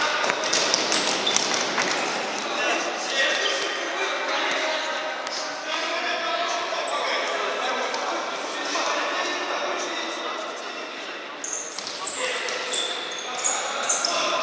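A ball thumps off a player's foot.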